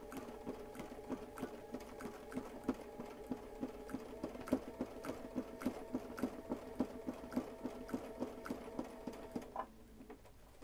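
A sewing machine hums and taps rapidly as it stitches.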